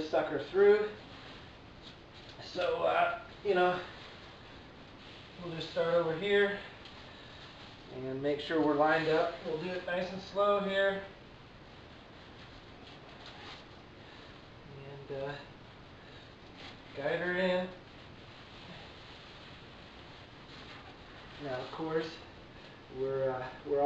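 A man talks calmly in short bursts, close by.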